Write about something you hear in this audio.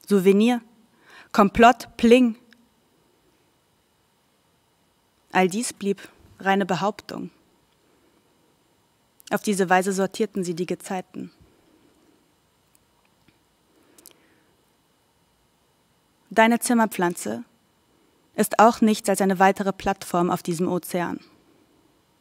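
A young woman reads aloud slowly into a microphone, with long pauses.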